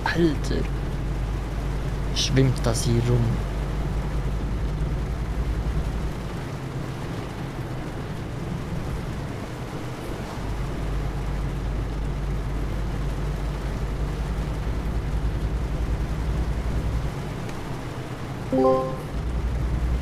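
A truck engine hums steadily as the truck drives along a road.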